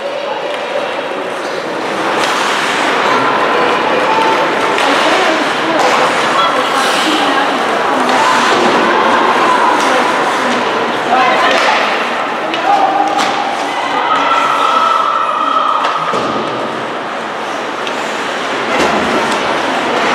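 Spectators chatter in a large echoing arena.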